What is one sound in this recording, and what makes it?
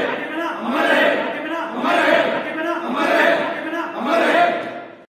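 A group of young men chant slogans loudly in unison, in rhythmic bursts.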